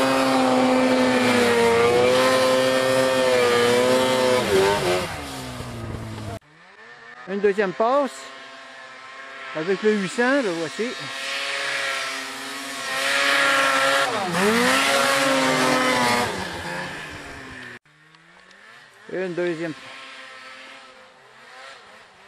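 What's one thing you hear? A snowmobile engine roars and revs up and down.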